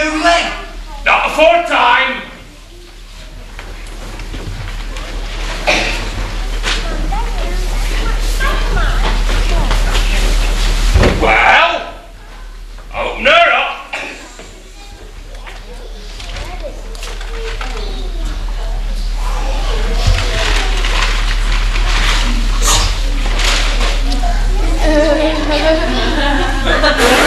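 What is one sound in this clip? Young actors speak loudly and with animation, heard from a distance in an echoing hall.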